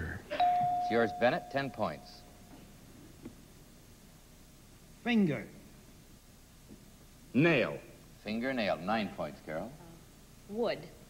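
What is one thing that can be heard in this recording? A middle-aged man speaks clearly into a microphone, with pauses between words.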